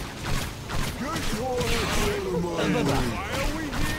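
Creatures screech and growl.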